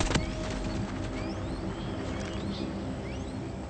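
A gun clicks and rattles as it is switched.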